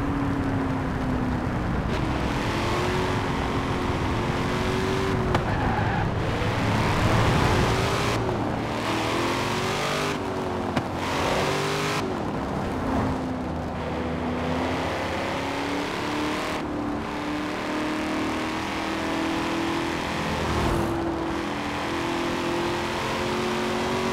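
A sports car engine roars, revving up and down through gear changes.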